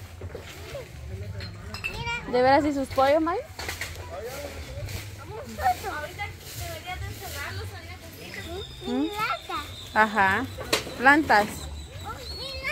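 A small boy talks and calls out excitedly close by.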